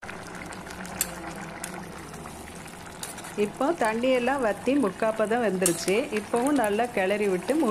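A metal spoon scrapes and stirs inside a pot.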